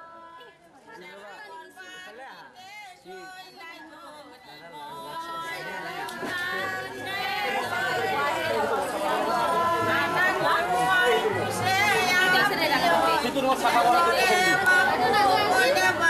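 A crowd of women talk, getting louder over time.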